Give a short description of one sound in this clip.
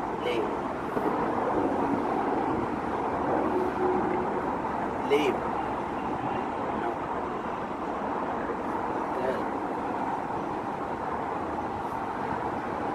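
A man speaks softly to a puppy, close by.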